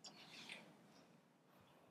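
A cloth rubs across a whiteboard.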